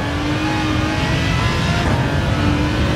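A racing car engine briefly drops in pitch as the gear shifts.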